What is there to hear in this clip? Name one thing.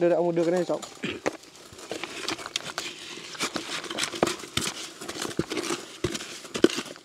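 Hands scrape and rustle in dirt and brush at the base of a metal pipe.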